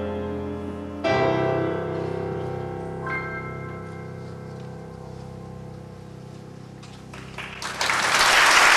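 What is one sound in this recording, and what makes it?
A piano plays slow, ringing chords in a large hall.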